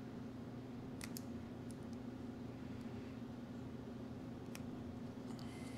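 Small metal parts click and tap together in fingers.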